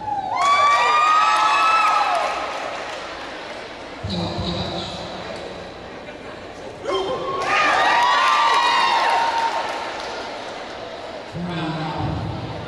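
Music with gliding, swooping tones plays loudly through loudspeakers in a large echoing hall.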